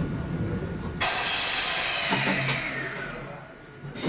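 Train brakes squeal as the train comes to a stop.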